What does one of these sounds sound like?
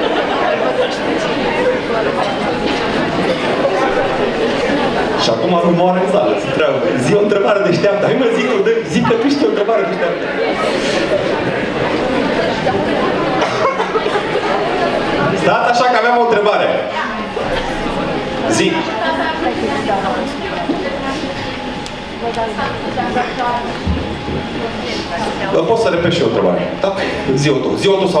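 A man speaks with animation over a loudspeaker in a large hall.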